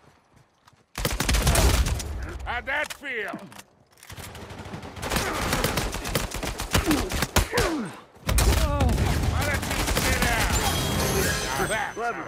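A rifle fires rapid bursts of gunshots.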